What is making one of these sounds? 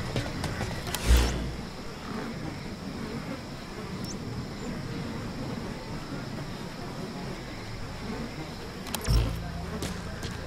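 A low whooshing thud sounds as a menu opens and closes.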